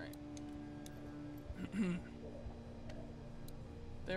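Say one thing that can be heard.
A plastic battery cover clicks open.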